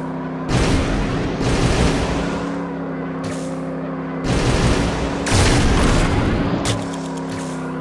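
A racing kart engine roars and whooshes in bursts of speed.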